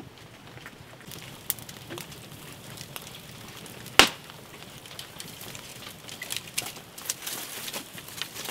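A small fire crackles and pops close by.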